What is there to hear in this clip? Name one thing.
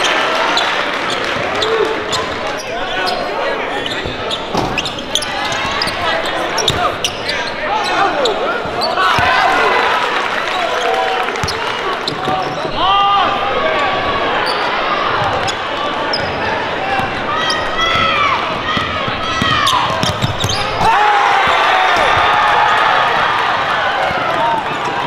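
A crowd cheers and chatters in an echoing gym.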